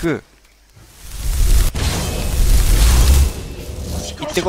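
A loud magical blast roars and whooshes.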